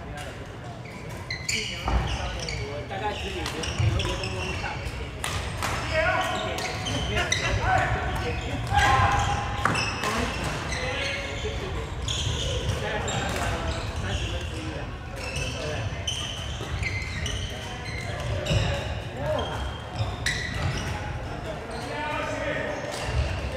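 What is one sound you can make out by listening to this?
Several men call out to one another in a large echoing hall.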